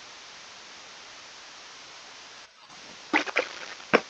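A wooden chest lid creaks shut.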